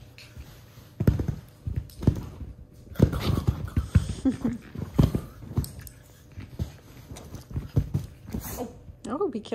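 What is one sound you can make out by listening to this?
A puppy scrabbles and thumps on a soft couch.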